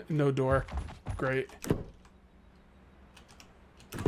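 A wooden door opens.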